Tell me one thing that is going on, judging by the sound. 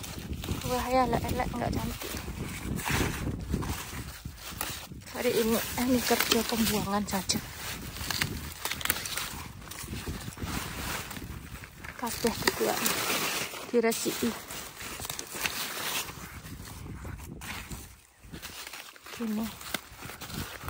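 Large leaves rustle and crackle as a hand pushes through plants close by.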